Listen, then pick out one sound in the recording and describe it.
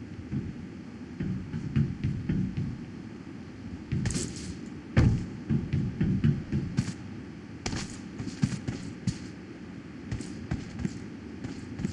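Footsteps thud on metal containers.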